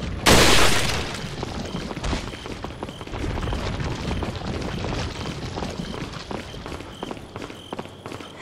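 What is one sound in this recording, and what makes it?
Footsteps scuff and tap on stone.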